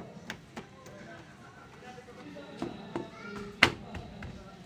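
Plastic clicks and knocks against a car door panel.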